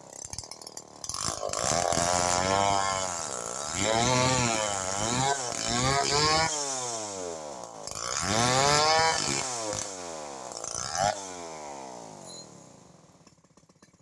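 A chainsaw engine revs up and down, cutting through wood.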